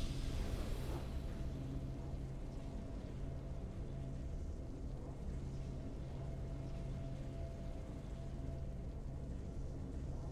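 Soft, steady background music hums on.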